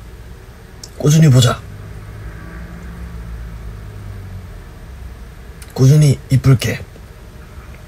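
A young man speaks in short bursts over an online call.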